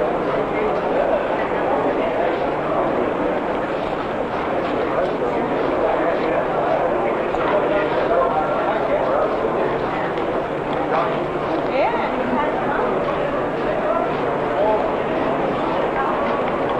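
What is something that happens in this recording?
A crowd of people chatters and murmurs.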